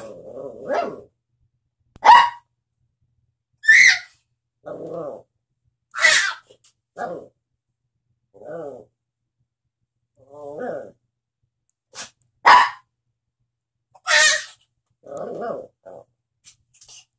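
A baby babbles and squeals.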